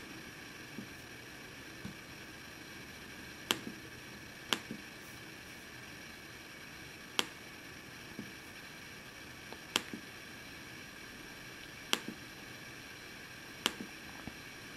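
Fingers click on a laptop touchpad now and then.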